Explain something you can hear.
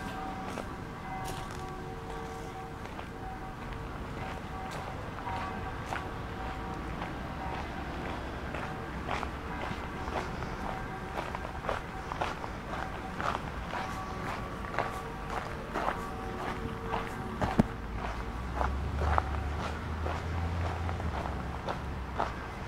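Leaves rustle in a light breeze outdoors.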